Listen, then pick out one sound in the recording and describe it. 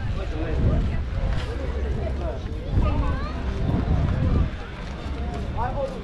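Young women chat as they stroll a short way ahead.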